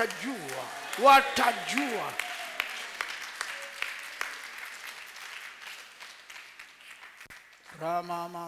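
A crowd cries out and prays loudly.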